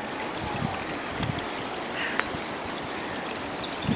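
A small stream trickles softly over stones.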